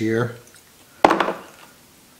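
A plastic wiring connector snaps together with a click.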